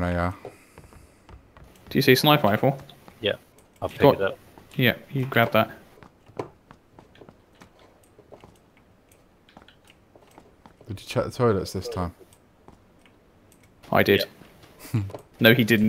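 Footsteps tread on a hard floor indoors.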